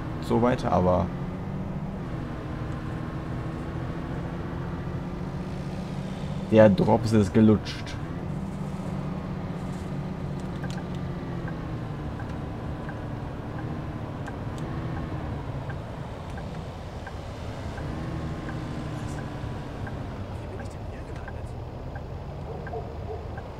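A diesel bus engine hums as the bus drives, its pitch rising and falling with speed, then slows to a stop.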